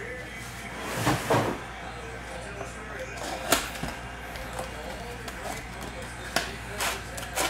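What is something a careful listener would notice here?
A cardboard box flap scrapes open.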